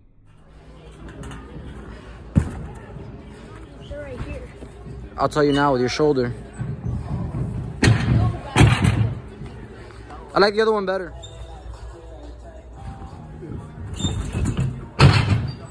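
A gymnast lands with dull thuds on padded mats.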